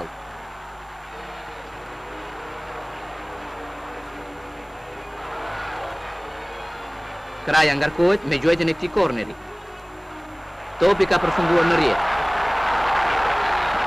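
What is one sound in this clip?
A large crowd cheers and roars outdoors in a stadium.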